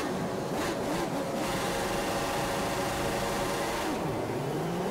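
A racing car engine revs in bursts while standing still.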